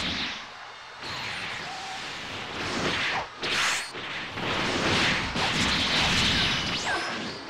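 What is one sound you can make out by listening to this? An energy blast roars loudly.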